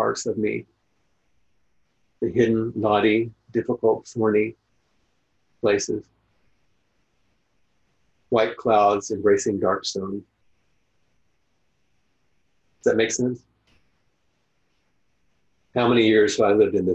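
An older man speaks calmly over an online call, pausing often.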